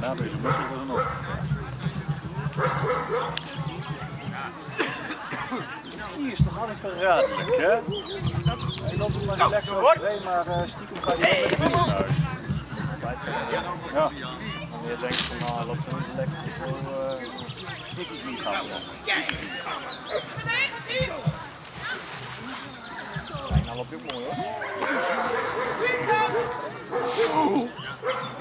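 A man calls out commands to a dog outdoors.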